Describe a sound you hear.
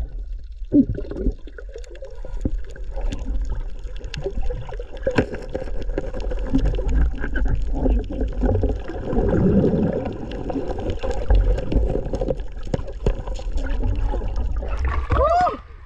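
Muffled underwater bubbling and rumbling go on steadily.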